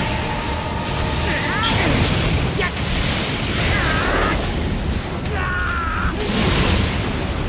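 Blades slash with sharp whooshes.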